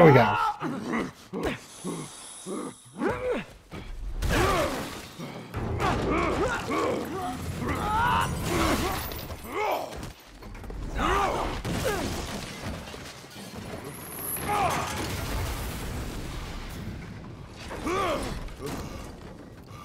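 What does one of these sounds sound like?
A man grunts and groans in strain.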